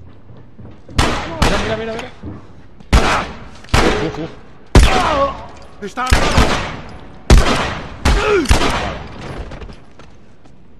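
Gunshots ring out loudly several times and echo.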